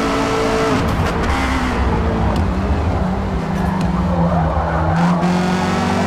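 Tyres screech as a car slides through a corner.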